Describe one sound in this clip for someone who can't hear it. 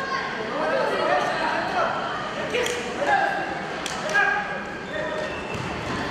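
Men shout loudly from the sidelines in a large echoing hall.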